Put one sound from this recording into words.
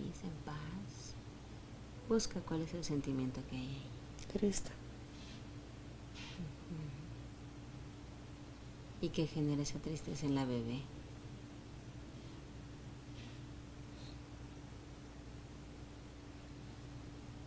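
A woman snores softly nearby.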